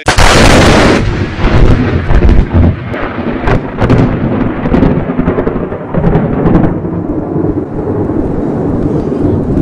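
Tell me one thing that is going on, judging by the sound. Sparks crackle and fizz after an explosion.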